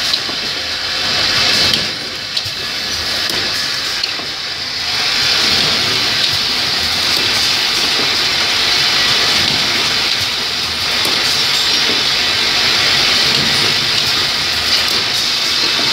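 A machine hums and clatters steadily.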